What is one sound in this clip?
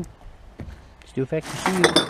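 Empty cans and bottles clatter together.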